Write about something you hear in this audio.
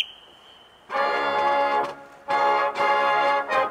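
A marching band plays loud sustained brass chords outdoors.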